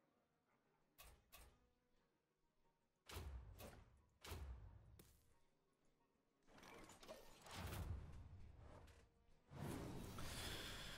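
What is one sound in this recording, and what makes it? Game sound effects whoosh and clash in quick bursts.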